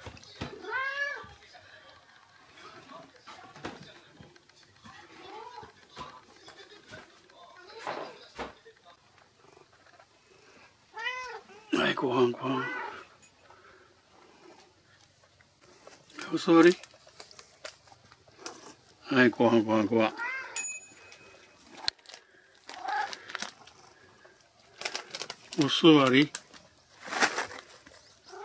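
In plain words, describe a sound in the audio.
A cat meows loudly up close, again and again.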